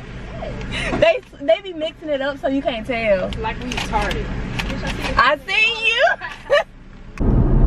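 A young woman sings loudly and with excitement.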